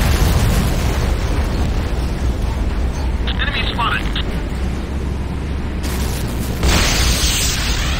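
A vehicle engine hums low and steady.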